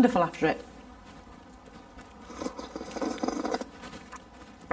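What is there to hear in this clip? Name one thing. A middle-aged man slurps a drink from a spoon.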